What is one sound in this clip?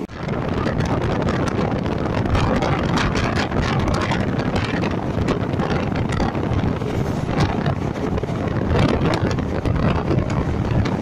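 Wind rushes loudly past an open window.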